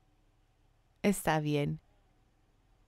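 A woman speaks briefly and loudly into a microphone.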